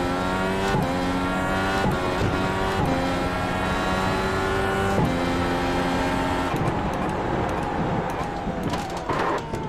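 A racing car engine screams at high revs, dropping briefly with each gear shift.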